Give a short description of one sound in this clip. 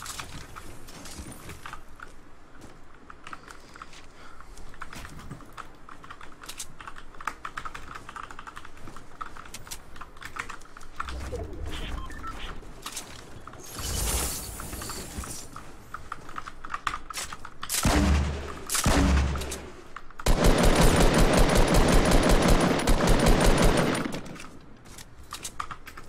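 Wooden building pieces snap into place with quick clicks and knocks.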